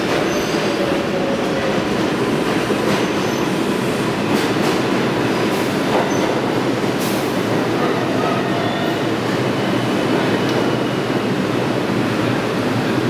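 Metal wheels squeal and clank on the rails.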